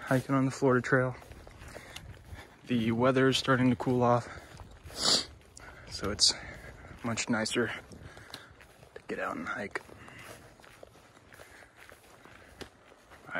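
Footsteps crunch softly on a needle-covered dirt trail.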